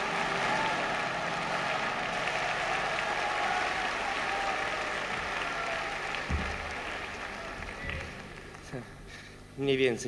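An audience applauds in a large hall and the applause fades.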